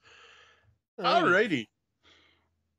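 A second man speaks calmly over an online call.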